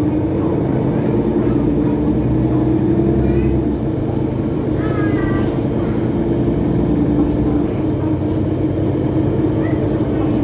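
A bus engine idles steadily close by with a low rumble.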